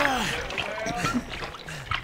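Liquid splashes as it pours from a bottle.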